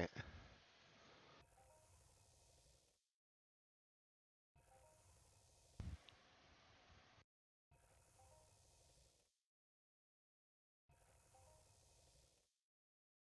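A soft magical shimmer sounds every few seconds.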